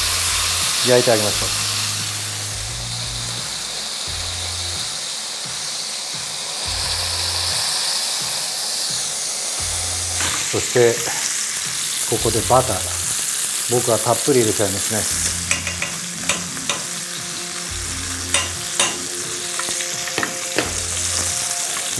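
Meat sizzles steadily in hot oil.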